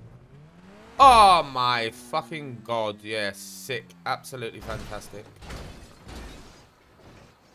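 A car crashes and tumbles over and over with heavy thuds.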